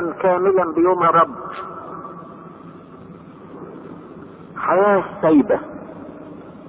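An elderly man speaks slowly, with long pauses between phrases.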